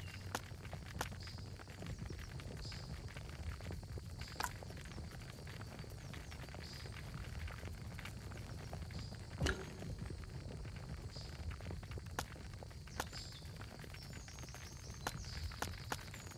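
Short interface clicks and blips sound now and then.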